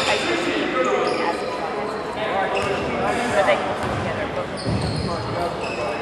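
Sneakers squeak sharply on a hardwood floor.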